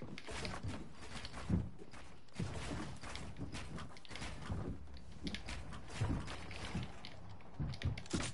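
Wooden building pieces snap into place with sharp clacks.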